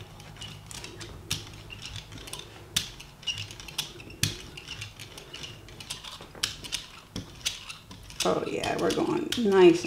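A rubber roller rolls with soft sticky clicks across a smooth surface.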